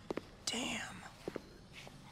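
A man mutters quietly.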